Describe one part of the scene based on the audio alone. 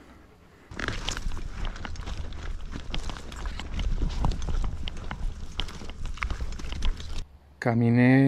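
Footsteps crunch and swish through dry grass and brush.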